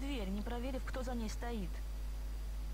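A young woman speaks calmly and close.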